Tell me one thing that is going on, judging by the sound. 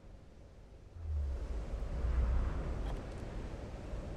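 Water rushes below with a deep rumble.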